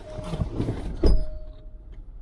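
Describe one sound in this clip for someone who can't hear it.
A car door shuts with a heavy thud.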